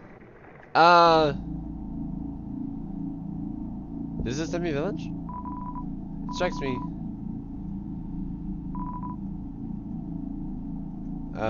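Upbeat electronic game music plays steadily.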